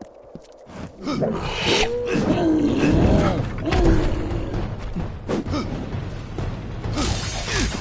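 Magic blasts burst with a crackle.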